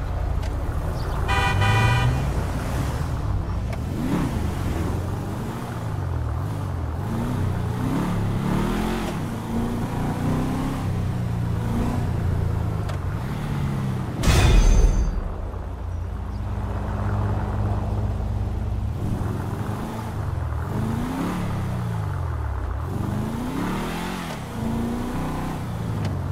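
A car engine revs, rising and falling in pitch as the car speeds along.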